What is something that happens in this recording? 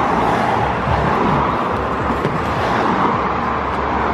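A cardboard box scrapes as it slides into a car boot.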